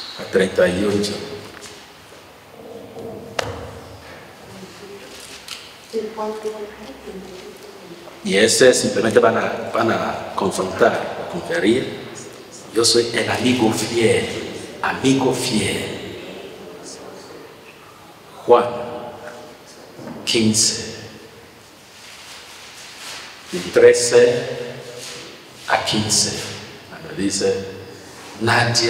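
A man speaks through a microphone in an echoing room, calmly with pauses.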